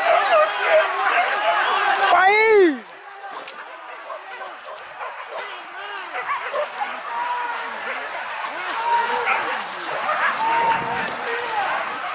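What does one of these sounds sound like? Several dogs bark and yelp excitedly outdoors.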